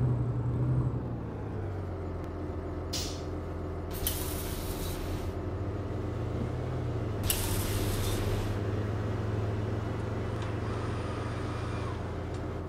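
A diesel articulated city bus engine idles at a stop.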